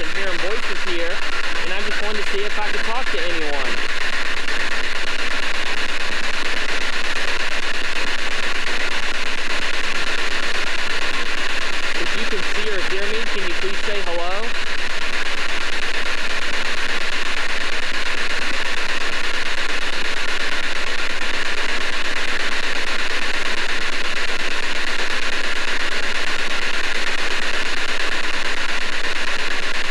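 A small radio hisses with loud, steady static.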